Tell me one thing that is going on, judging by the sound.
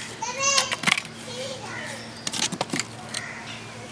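Sticks of firewood knock as they are pushed into a clay stove.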